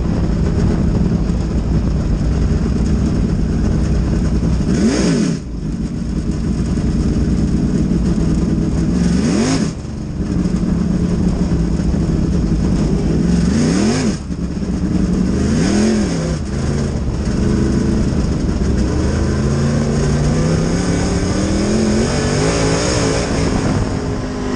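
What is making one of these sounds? A race car engine roars loudly up close, revving up and down through the corners.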